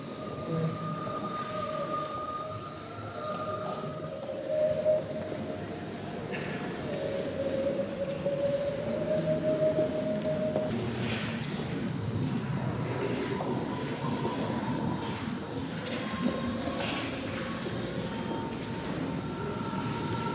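A choir of men sings a slow, drawn-out chant in a large echoing hall.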